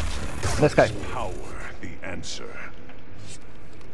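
Energy blades hum and swoosh as they swing and clash.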